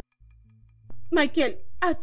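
A man speaks in a puzzled tone.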